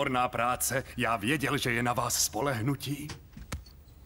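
An elderly man speaks with animation, close by.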